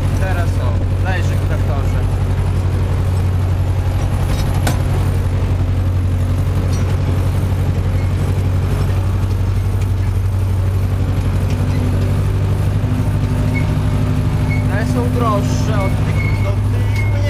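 A tractor engine drones steadily and loudly from close by.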